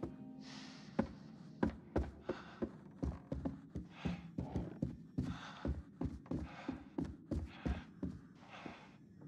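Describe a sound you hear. Footsteps thud on a wooden floor at a quick pace.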